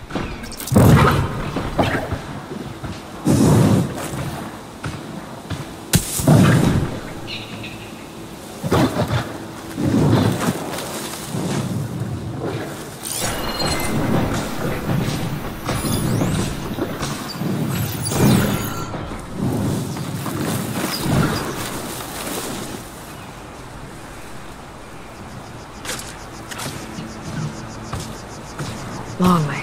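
Footsteps rustle through dense tall grass.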